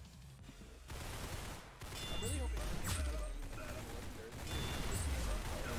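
Rapid gunfire blasts from a video game.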